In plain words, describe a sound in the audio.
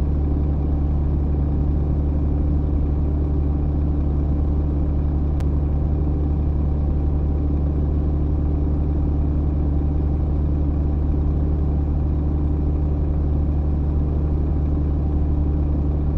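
A diesel semi-truck engine drones while cruising on a motorway.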